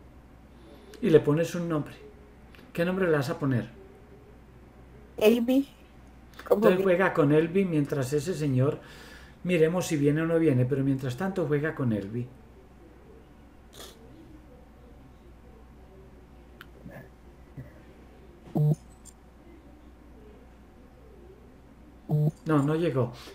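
A middle-aged man speaks calmly and with animation over an online call.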